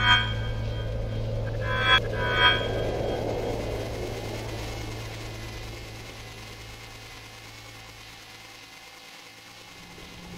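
A deep explosion rumbles and slowly fades away.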